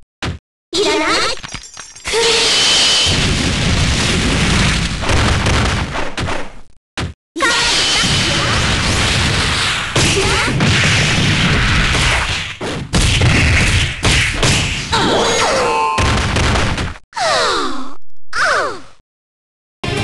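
Energy blasts whoosh and explode in a fighting game.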